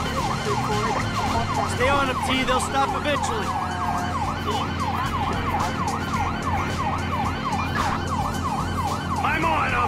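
A motorcycle siren yelps rapidly up and down.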